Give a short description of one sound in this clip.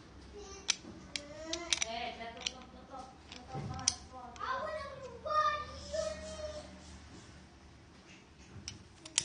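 A metal ratchet tool clicks sharply in a hand.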